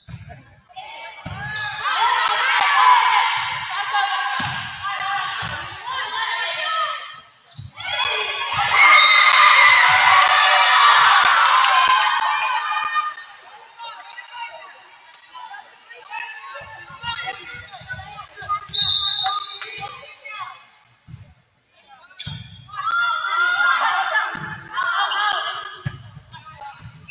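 Spectators and players cheer and shout in a large echoing gym.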